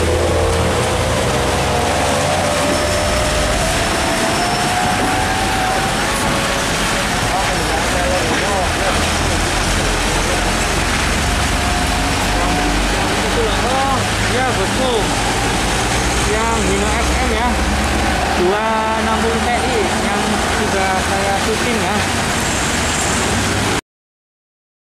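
A heavy truck engine rumbles as the truck drives slowly past.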